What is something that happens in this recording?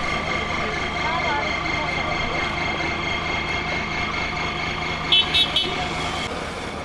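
Women talk nearby.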